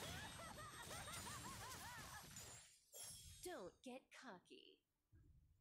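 Game spell effects whoosh and clash in a fight.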